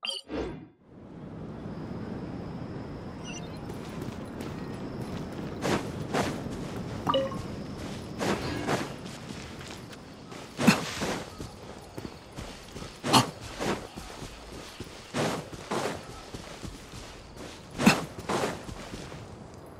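Footsteps run over grass and stone.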